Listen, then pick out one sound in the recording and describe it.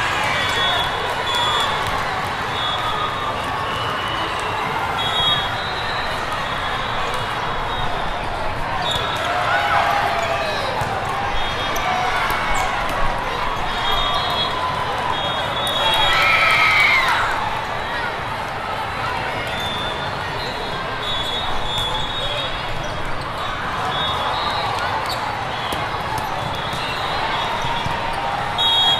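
A large crowd chatters steadily in a big echoing hall.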